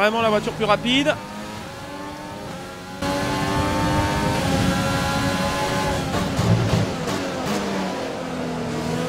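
A racing car engine whines at high revs, shifting gears as it accelerates.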